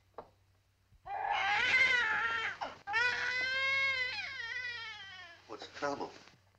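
A baby cries loudly.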